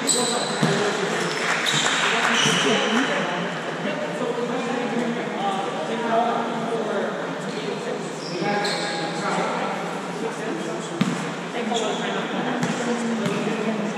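Young men call out and chatter across a large echoing hall.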